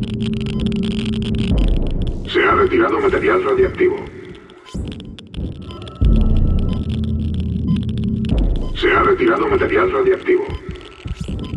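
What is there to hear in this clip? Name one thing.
A weapon fires buzzing, crackling energy blasts.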